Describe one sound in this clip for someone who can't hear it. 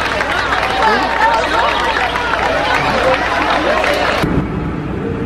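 A crowd cheers and whistles outdoors.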